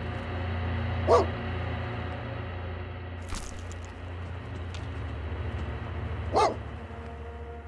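A dog gives a short, playful bark.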